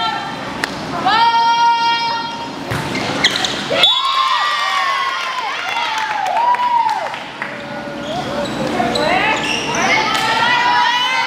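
Sneakers squeak sharply on a hard gym floor in an echoing hall.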